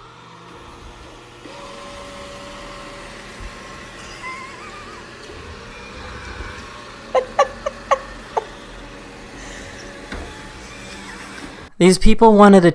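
A robot vacuum hums steadily.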